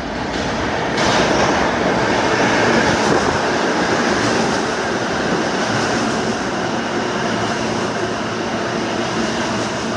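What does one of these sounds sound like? A subway train roars into an echoing station, rumbling and rattling loudly along the tracks.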